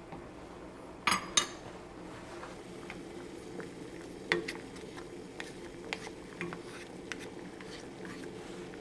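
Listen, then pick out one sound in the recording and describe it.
A wooden spoon knocks and scrapes against a pot.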